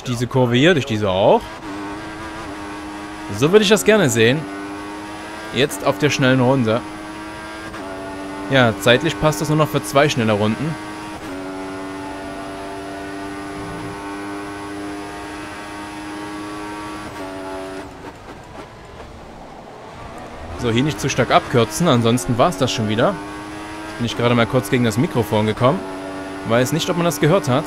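A racing car engine screams at high revs, rising in pitch and dropping with each gear change.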